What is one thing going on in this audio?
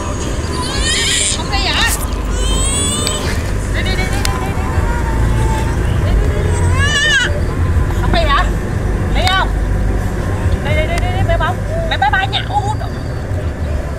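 A toddler squeals and babbles in a high voice.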